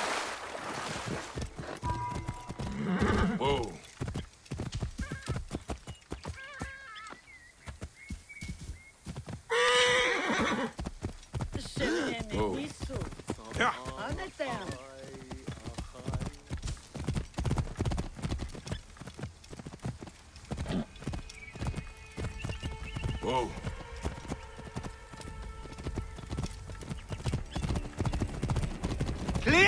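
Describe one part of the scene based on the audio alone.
Horse hooves thud rapidly on a dirt path.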